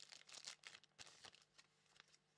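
Card packs rustle and tap in someone's hands.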